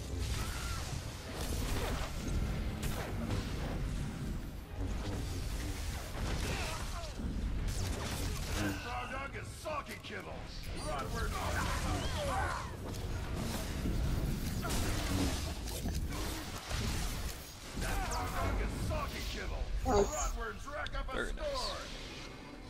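Laser blasts and energy weapons crackle in a busy battle.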